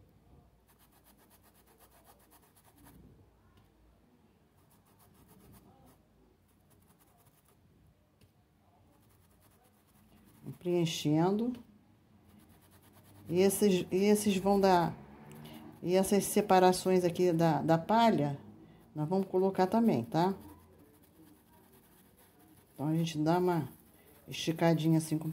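A paintbrush brushes softly against cloth.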